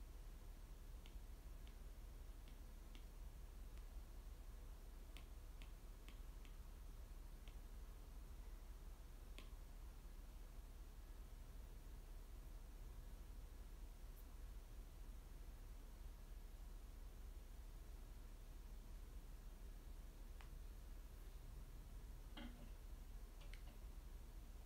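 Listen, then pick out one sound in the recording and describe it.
A pen lightly taps and clicks close by.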